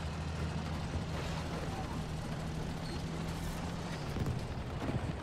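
Tank tracks clatter and grind over rough ground.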